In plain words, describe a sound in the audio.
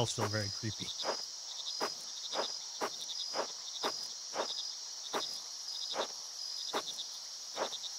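Footsteps tread steadily on soft ground.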